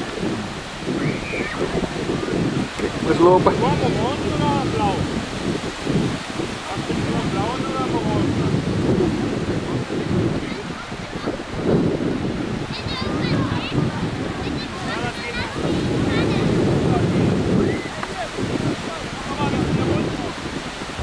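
Children shout and call out in the distance.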